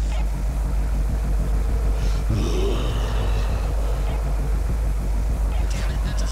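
A flare hisses and crackles as it burns.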